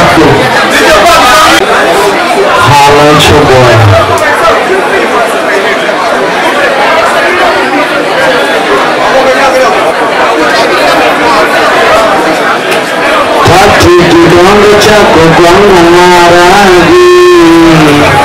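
A young man sings loudly into a microphone.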